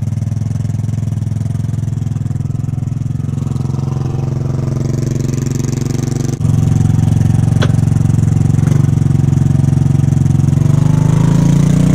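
A small scooter engine idles with a steady low putter.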